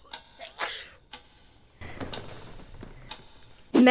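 A young woman speaks cheerfully and close to a microphone.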